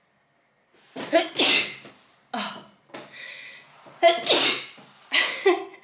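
A young woman sneezes loudly up close.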